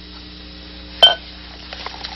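A cork pops out of a bottle.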